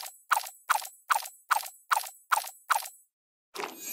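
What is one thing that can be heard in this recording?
Bright chimes ring in quick, even succession.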